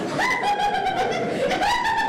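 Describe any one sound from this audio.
A woman laughs aloud.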